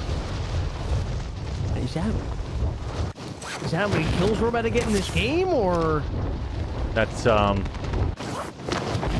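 Wind rushes loudly.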